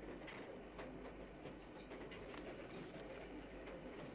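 A newspaper rustles as it is folded down.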